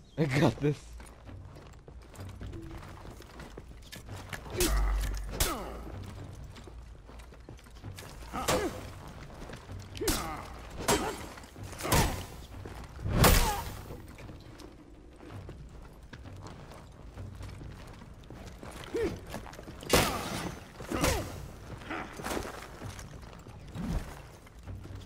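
Heavy weapons clash and strike with sharp metallic hits.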